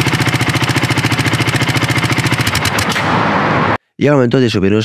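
A motorcycle engine idles with a rapid, throbbing exhaust beat close by.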